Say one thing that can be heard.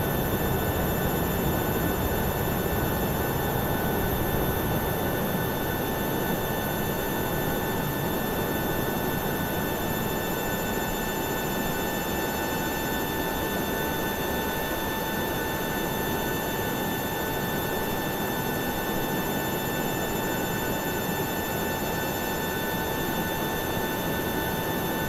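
A jet engine whines steadily at idle.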